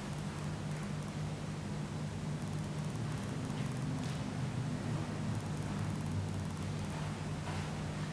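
A man's running shoes thud softly on artificial turf as he jogs.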